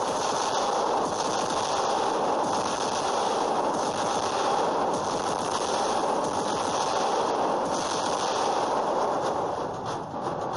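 Heavy guns fire in rapid, rattling bursts.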